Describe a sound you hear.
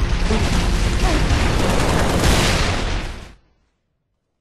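A plasma grenade explodes with a crackling blast.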